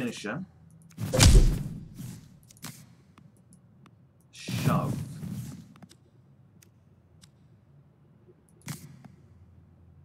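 Punches and thuds of a fight sound in bursts.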